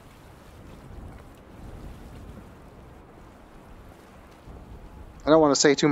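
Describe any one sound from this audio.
Waves churn and wash against rocks.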